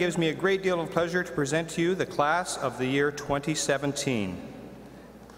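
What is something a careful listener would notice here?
An elderly man speaks into a microphone over loudspeakers in a large hall.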